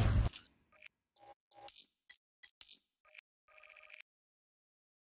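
Menu selections click softly.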